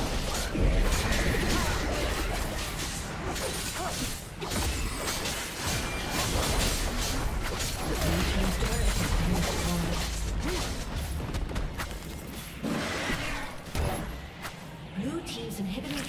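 Magic spells crackle and blast in a busy battle.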